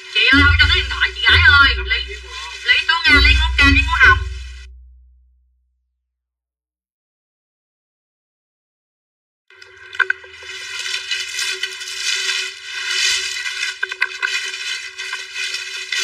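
A young woman speaks loudly and with animation close by.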